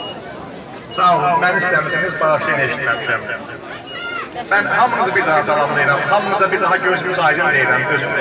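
A man speaks loudly through a microphone and loudspeaker outdoors.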